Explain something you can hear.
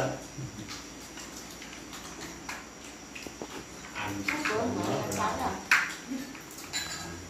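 Spoons and chopsticks clink against bowls.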